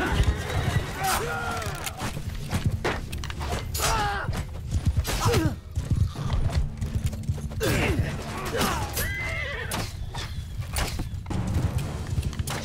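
Metal weapons clash and clatter.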